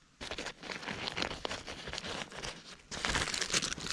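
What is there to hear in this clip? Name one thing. A plastic buckle clicks.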